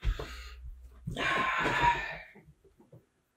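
A chair creaks and rustles as a young man sits down.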